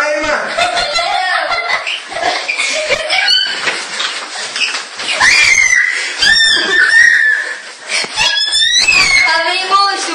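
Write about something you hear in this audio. Children talk excitedly nearby.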